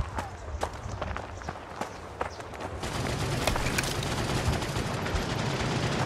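Footsteps thud quickly on dirt.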